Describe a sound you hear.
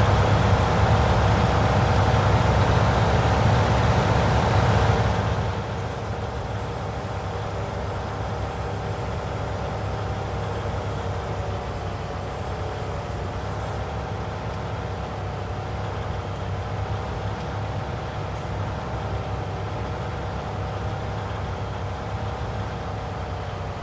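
A tractor engine drones steadily, louder at first and then quieter.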